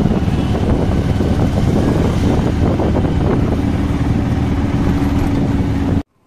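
Wind rushes through an open vehicle side.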